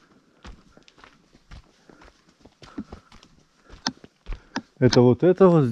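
Footsteps crunch on gravel and dry soil.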